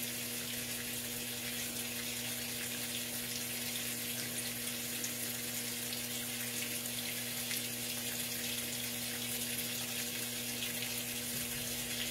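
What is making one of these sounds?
Water pours steadily into a washing machine tub.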